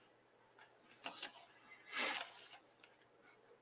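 Paper rustles as hands handle a sketchbook.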